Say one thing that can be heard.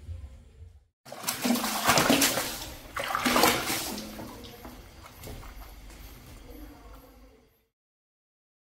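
Water splashes and churns in a tub.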